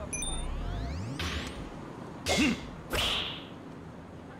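A golf club swishes and strikes a ball with a sharp crack.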